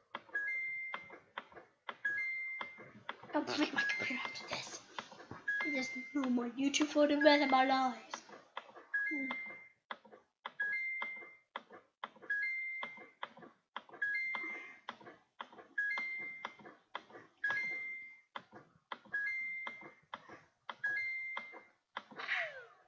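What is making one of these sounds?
A short electronic chime rings again and again at a steady pace.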